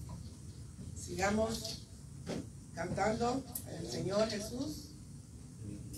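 A woman speaks calmly into a microphone, heard through a loudspeaker in a room.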